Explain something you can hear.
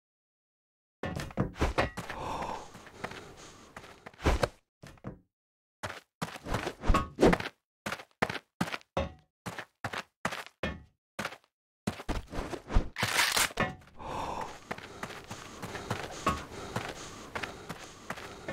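Footsteps clatter quickly on a metal floor.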